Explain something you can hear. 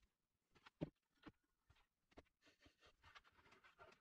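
A wooden block knocks onto a wooden board.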